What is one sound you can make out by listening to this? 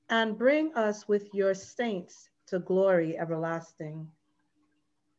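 A woman speaks steadily over an online call, as if reading out.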